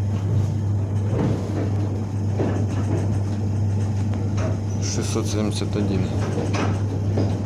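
A train rumbles steadily along the tracks.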